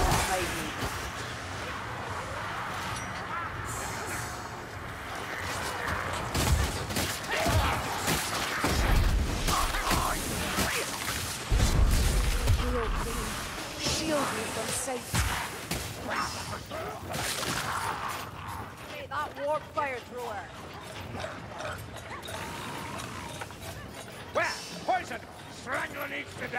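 A crossbow fires bolts with sharp thwacks.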